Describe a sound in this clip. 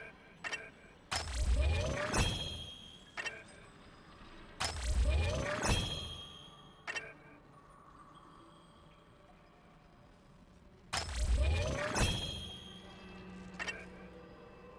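A soft click ticks as a menu cursor moves.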